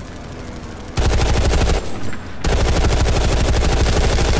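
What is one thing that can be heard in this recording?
A machine gun fires in rapid, steady bursts.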